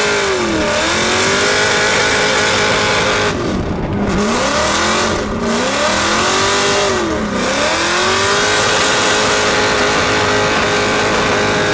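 Tyres screech as a car drifts and spins its wheels.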